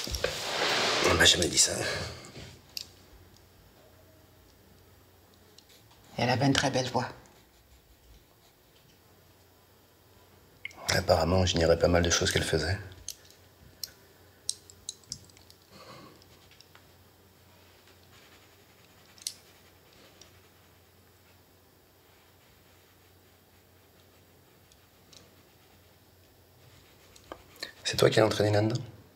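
A middle-aged man speaks softly and sadly, close by.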